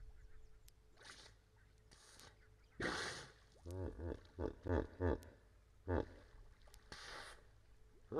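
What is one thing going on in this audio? A hippo snorts and blows air through its nostrils.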